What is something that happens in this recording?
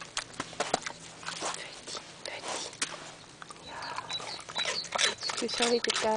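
A pig chews noisily with its mouth open.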